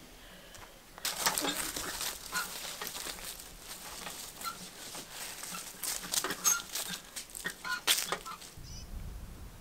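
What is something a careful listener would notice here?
Dry leaves rustle and crackle loudly underfoot.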